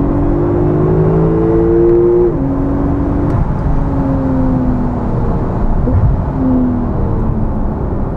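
A car engine hums and its pitch shifts as it changes gear.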